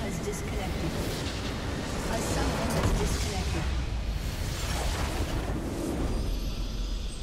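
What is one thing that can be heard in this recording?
A loud explosion booms and crackles, then dies away.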